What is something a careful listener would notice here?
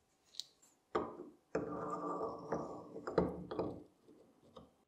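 Gears turn and whir as a handle is cranked.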